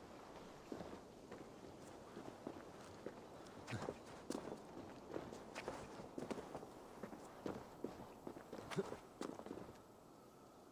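Footsteps crunch on rock and dirt.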